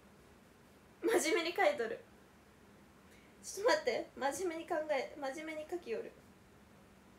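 A young woman speaks cheerfully and close to a microphone.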